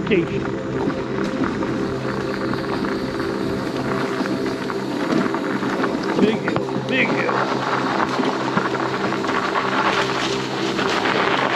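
Tyres roll and crunch over a dirt trail.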